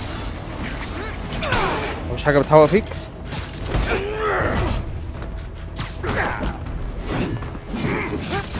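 Blows land with heavy thuds during a fight.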